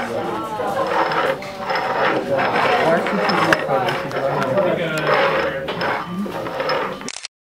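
Plastic cups slide and scrape across a wooden table.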